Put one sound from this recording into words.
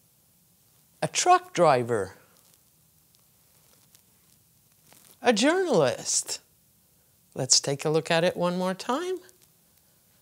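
An older woman speaks slowly and clearly into a close microphone, in short phrases with pauses.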